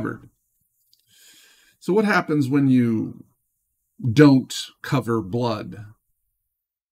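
A middle-aged man speaks calmly and close to a microphone, in short bursts with pauses.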